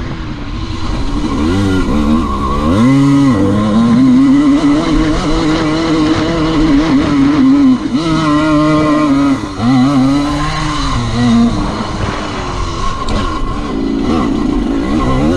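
A dirt bike engine revs up and down loudly.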